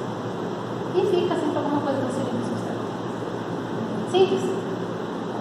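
A young woman speaks briefly nearby.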